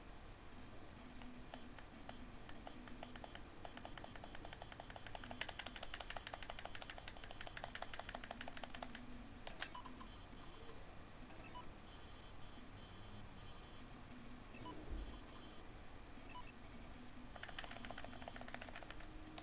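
Short electronic blips tick rapidly as letters are typed out.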